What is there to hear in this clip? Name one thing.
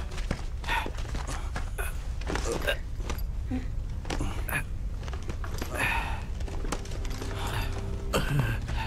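Men grunt and strain as they struggle.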